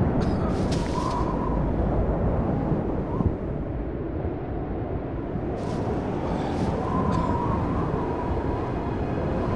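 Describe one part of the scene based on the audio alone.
Wind roars steadily in a snowstorm.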